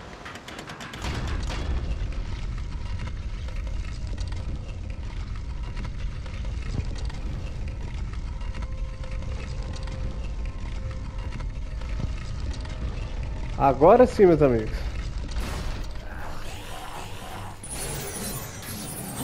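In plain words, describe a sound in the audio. A heavy stone lift rumbles low and steady as it moves.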